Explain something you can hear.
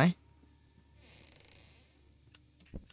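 A cabinet door swings open.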